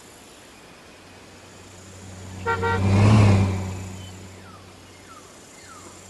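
A vehicle engine roars as it speeds past and fades.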